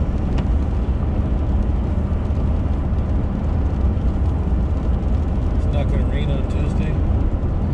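Tyres roll over a wet road with a steady rushing noise.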